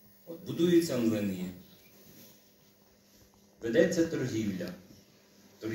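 An elderly man speaks slowly and expressively through a microphone in a large hall, with pauses between phrases.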